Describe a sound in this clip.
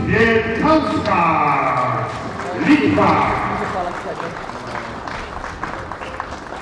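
A crowd cheers and applauds in an echoing hall.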